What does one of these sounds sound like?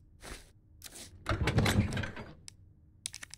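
A heavy metal lid creaks open and thuds.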